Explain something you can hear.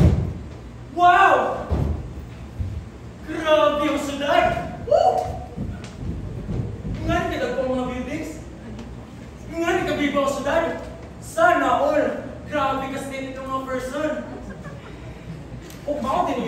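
A young man speaks loudly and with animation in an echoing hall.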